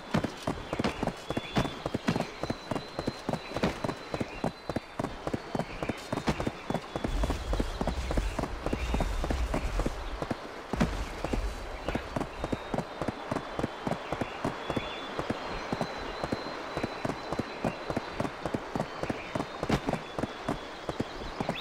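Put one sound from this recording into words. A horse gallops over a dirt path with rapid hoofbeats.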